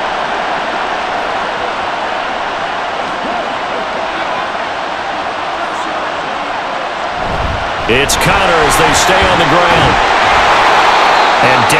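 A stadium crowd roars steadily, swelling louder toward the end.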